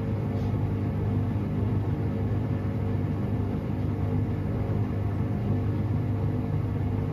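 A washing machine drum hums and turns steadily.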